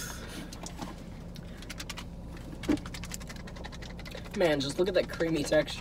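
A plastic wrapper crinkles as a young man opens a snack.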